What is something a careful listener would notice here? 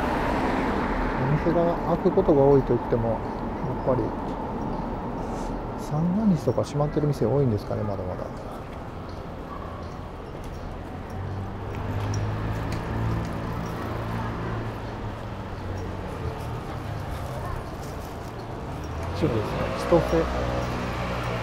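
Quiet street noise hums steadily outdoors.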